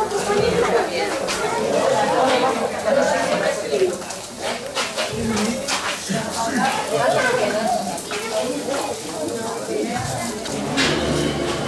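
A crowd of men, women and children chatters and murmurs nearby outdoors.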